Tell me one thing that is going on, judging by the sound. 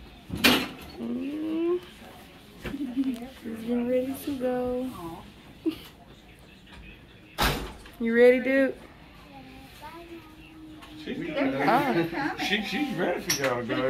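A young girl talks and laughs happily close by.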